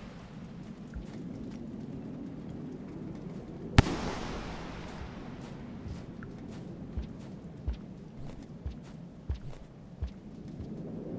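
Soft footsteps thud now and then.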